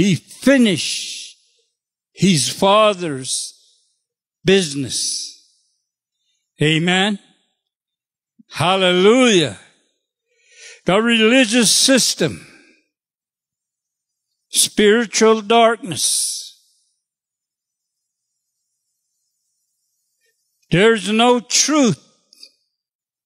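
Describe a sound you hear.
An elderly man speaks slowly and earnestly into a microphone, in short phrases with long pauses.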